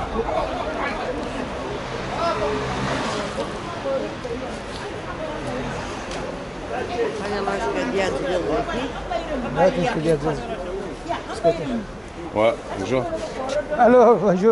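Men and women talk in a busy crowd close by.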